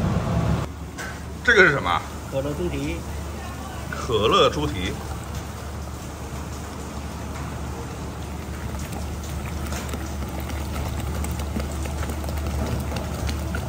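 Fizzy soda pours and bubbles into a pot.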